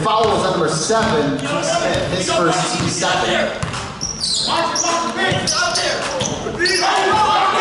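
Men shout and call out in a large echoing hall.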